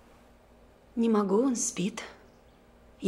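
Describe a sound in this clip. A middle-aged woman speaks briefly.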